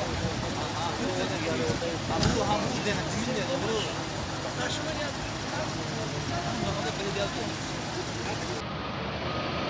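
Men talk in low voices nearby outdoors.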